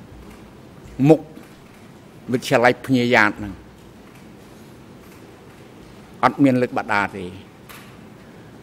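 An elderly man speaks in short bursts into a microphone.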